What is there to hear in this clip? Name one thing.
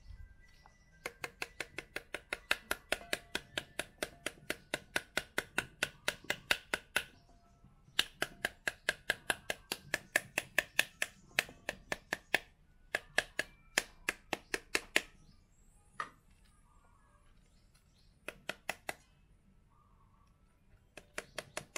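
A knife handle taps rapidly on a pomegranate's skin.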